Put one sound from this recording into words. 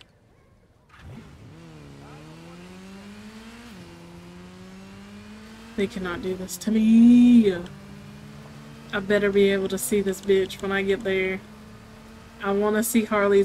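A motorcycle engine starts and revs, rising and falling as it speeds along.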